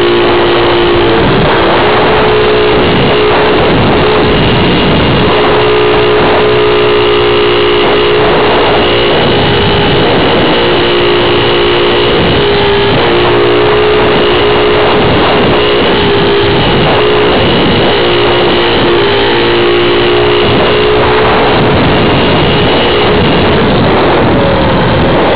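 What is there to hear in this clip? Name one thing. Wind rushes loudly past in the open air.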